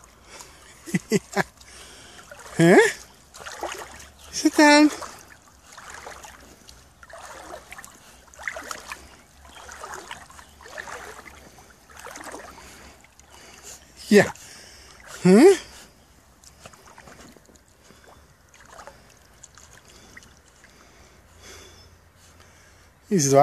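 A dog paddles through shallow water with soft splashes.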